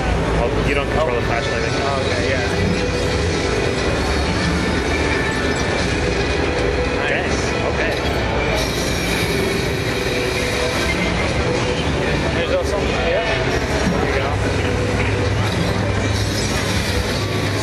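Game music and sound effects play from a loudspeaker.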